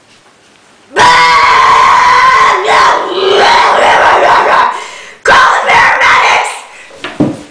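A young woman retches and vomits loudly.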